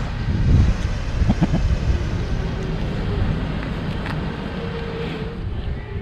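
A small car drives slowly past.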